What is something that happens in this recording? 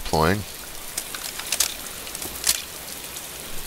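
Gear and a rifle rattle and click.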